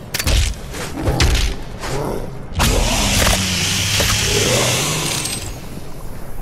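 A monster is torn apart with wet, crunching blows.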